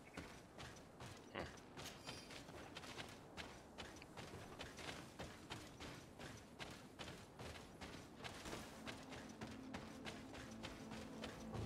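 Footsteps rustle through grass at a steady pace.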